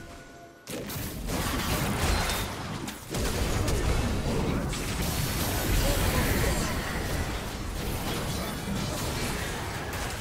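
Spell effects whoosh and crackle in quick bursts.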